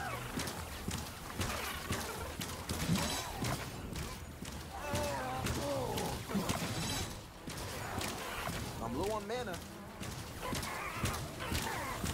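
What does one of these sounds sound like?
A sword swings and strikes again and again.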